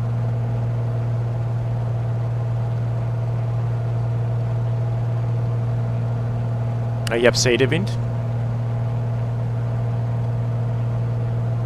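The six-cylinder piston engine of a light aircraft drones in cruise, heard from inside the cockpit.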